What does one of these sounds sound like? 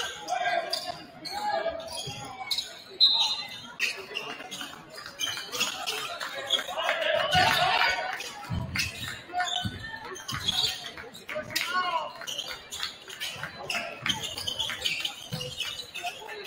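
A crowd chatters and calls out in a large echoing gym.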